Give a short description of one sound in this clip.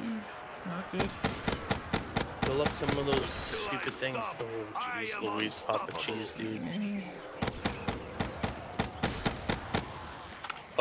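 Rapid gunfire rings out in quick bursts.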